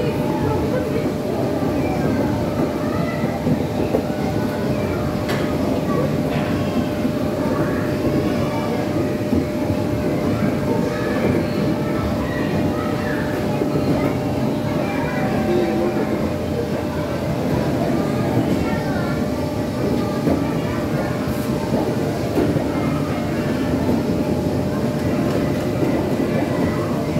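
Plastic balls rattle and bounce against clear walls.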